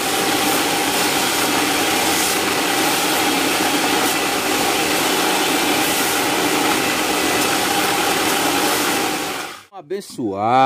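An angle grinder grinds metal with a loud, steady whine.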